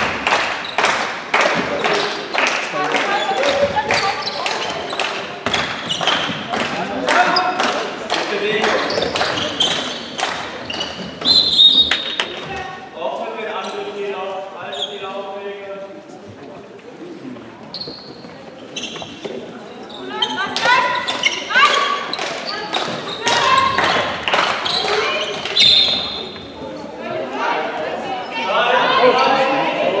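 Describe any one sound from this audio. A ball bounces rapidly on a hard floor in a large echoing hall.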